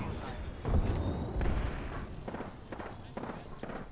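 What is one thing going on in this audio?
Electricity crackles and zaps.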